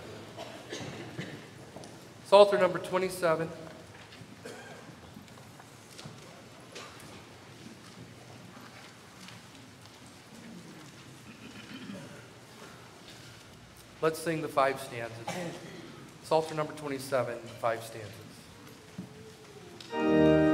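A man speaks calmly through a microphone in a large room, with pauses.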